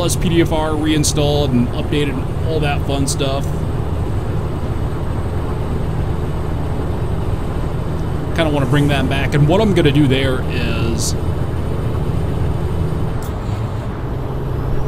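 A truck engine rumbles steadily at cruising speed.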